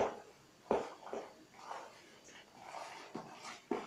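Shredded cabbage tumbles into a pot.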